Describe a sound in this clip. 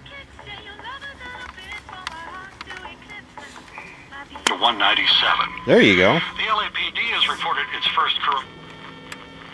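A radio loudspeaker plays warbling, squealing tones that break up and change quickly.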